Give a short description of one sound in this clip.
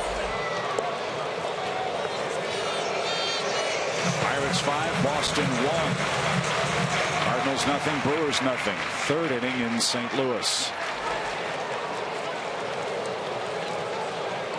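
A stadium crowd murmurs steadily in a large open space.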